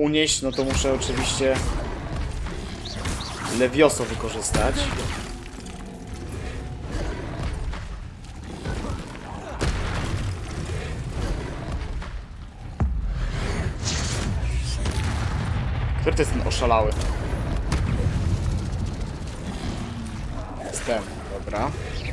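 Magic spells crackle and zap in quick bursts.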